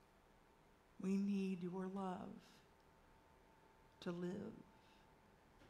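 A woman speaks slowly and calmly over a microphone.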